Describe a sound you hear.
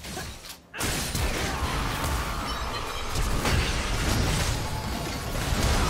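Magic spells crackle and boom in a fierce battle.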